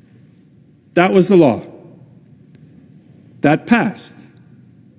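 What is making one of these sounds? A middle-aged man speaks with emphasis into a microphone in a large echoing hall.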